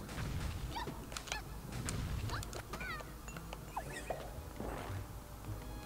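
Upbeat video game music plays.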